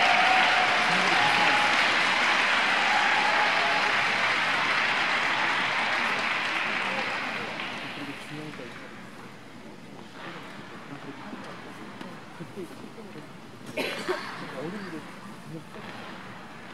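Ice skate blades glide and scrape across an ice rink.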